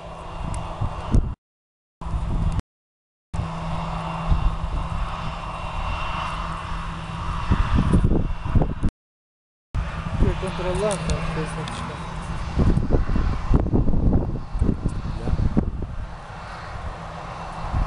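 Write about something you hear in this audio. A jet airliner's engines roar steadily in the distance.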